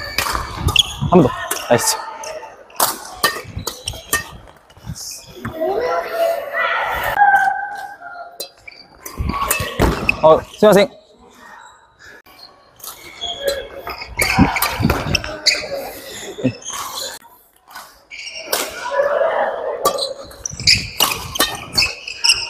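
Badminton rackets strike a shuttlecock in a quick back-and-forth rally.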